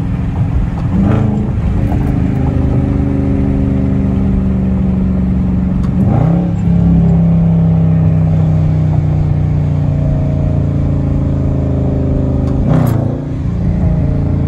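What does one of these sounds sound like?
A car engine slowly rises in pitch and drops sharply with each gear change.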